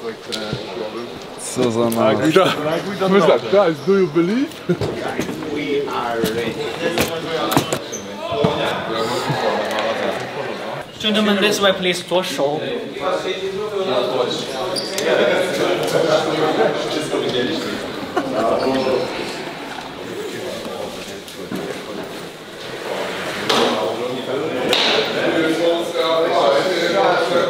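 Young men talk and chatter nearby.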